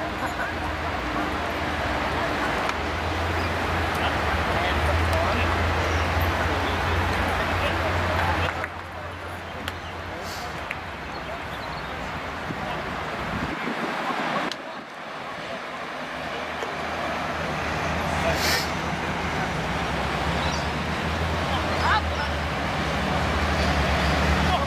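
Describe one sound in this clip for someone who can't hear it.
Young men call out to each other at a distance across an open field.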